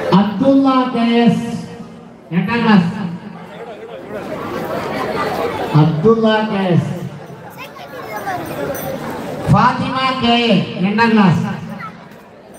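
A man sings loudly through a microphone and loudspeakers in a large echoing hall.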